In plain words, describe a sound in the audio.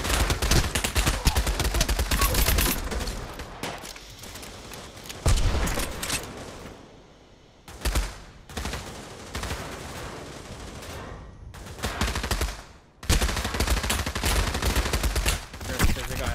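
Gunfire rattles in rapid bursts nearby.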